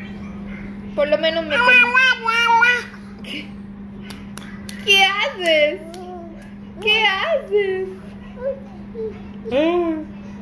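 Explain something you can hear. A toddler babbles and squeals happily close by.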